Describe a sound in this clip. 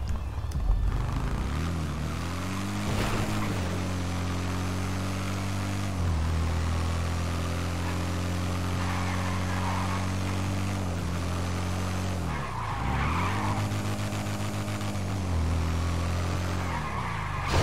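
A motorcycle engine drones steadily, dipping and rising in pitch as it shifts gears.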